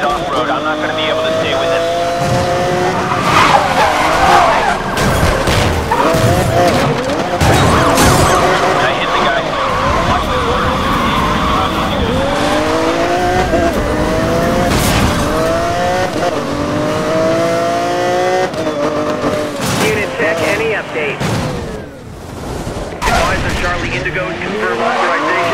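A sports car engine roars and revs through gear changes.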